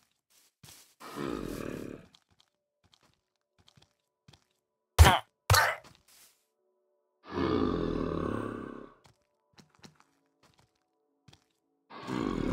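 A zombie groans and moans.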